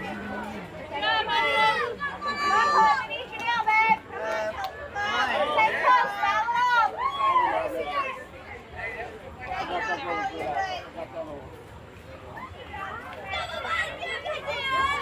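Young girls chant and cheer loudly close by.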